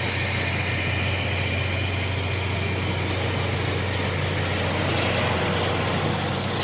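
A truck's diesel engine rumbles steadily close by.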